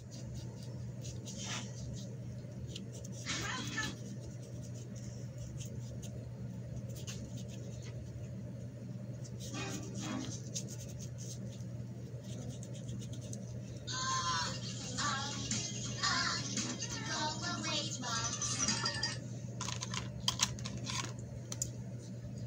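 Wet paint squelches as a hand squeezes a soaked lump in a pot.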